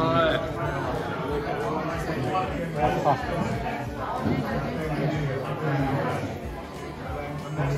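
A crowd of adults chatters all around.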